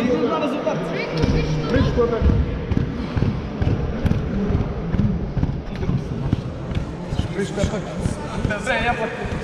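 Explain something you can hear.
Men talk nearby in a large echoing hall.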